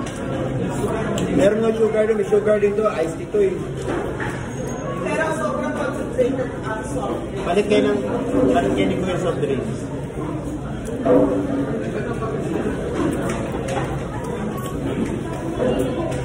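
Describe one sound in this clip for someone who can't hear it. A young adult talks close by.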